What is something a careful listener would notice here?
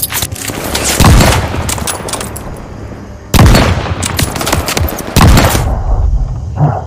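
Loud shotgun blasts boom, one after another.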